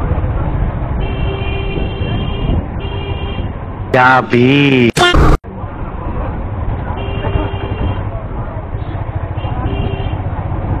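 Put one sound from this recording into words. A motorcycle horn beeps in short bursts.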